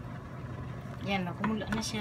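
A wooden spoon stirs and sloshes broth in a pot.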